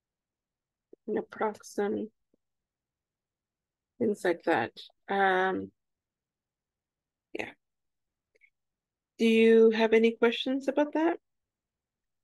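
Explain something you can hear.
A woman speaks calmly through an online call, in short phrases.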